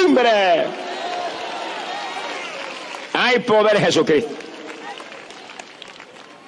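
A large crowd murmurs and chatters steadily outdoors.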